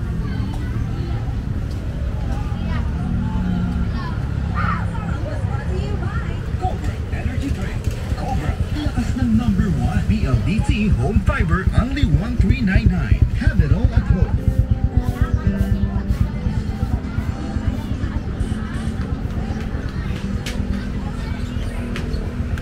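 Footsteps tap steadily on paving.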